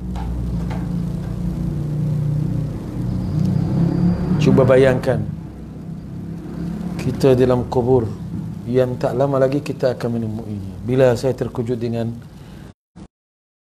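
An elderly man chants in a melodic voice through a microphone, in an echoing room.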